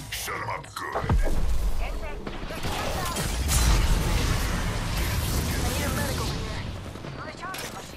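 A deep rumbling roar swells and then fades.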